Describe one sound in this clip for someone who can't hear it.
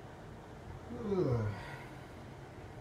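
A man nearby lets out a short, loud exclamation that falls in pitch.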